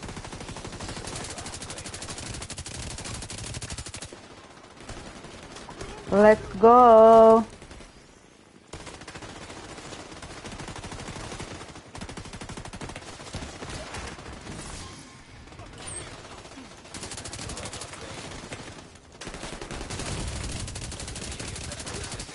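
Rifles fire in rapid bursts.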